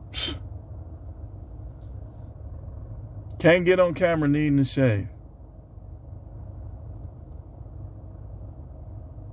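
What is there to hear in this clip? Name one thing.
A low engine hum drones steadily inside a car.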